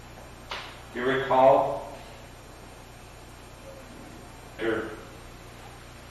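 A man speaks briefly in a quiet room.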